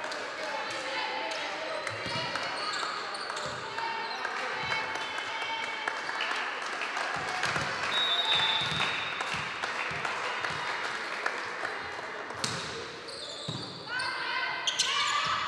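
Players' voices call out and echo in a large hall.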